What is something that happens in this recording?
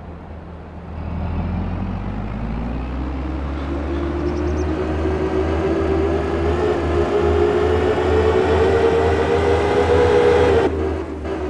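A heavy diesel engine revs up and roars as the machine drives off.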